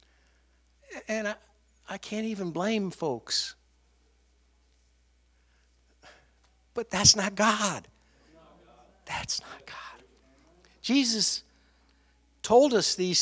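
A middle-aged man speaks expressively into a microphone, in bursts with pauses.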